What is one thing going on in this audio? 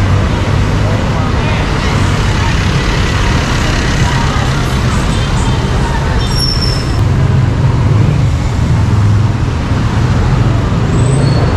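Motorbike engines hum and buzz as they pass close by.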